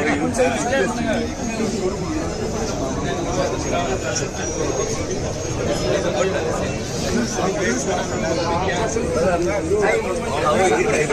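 A crowd of men chatters and shouts all around, close by, in an echoing room.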